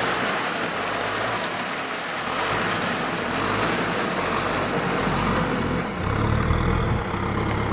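Mud and water slosh under a tractor's tyres and tiller.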